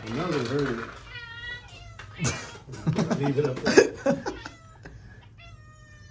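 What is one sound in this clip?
A cat meows.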